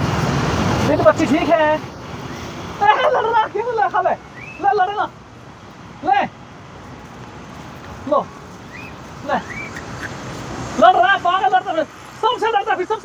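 A man talks animatedly nearby, outdoors.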